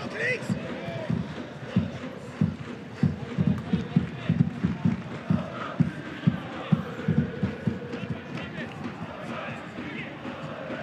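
A large crowd chants and cheers in an open-air stadium.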